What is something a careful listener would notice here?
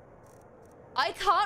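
A young woman speaks briefly close to a microphone.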